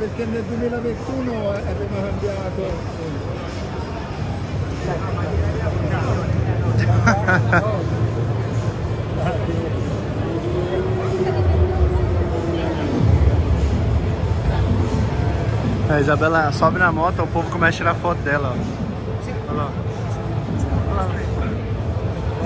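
A crowd murmurs and chatters throughout a large, echoing hall.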